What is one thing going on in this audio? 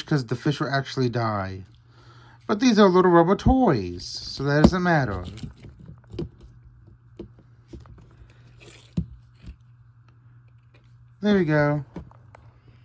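A hollow plastic ball clicks and knocks softly as hands turn it over.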